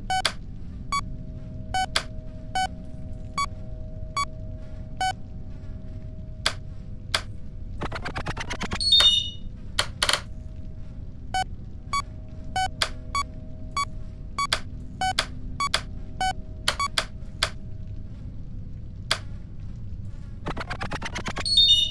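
Buttons on a game keypad give short electronic beeps as they are pressed.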